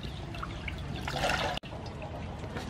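Water pours and drips back into a basin.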